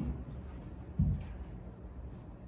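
A metal vessel clinks softly on a table.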